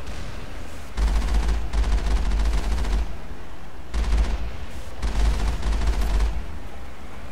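A vehicle engine rumbles and roars in bursts.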